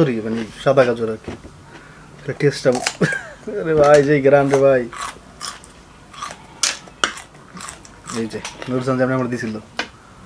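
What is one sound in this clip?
A woman crunches on a raw vegetable.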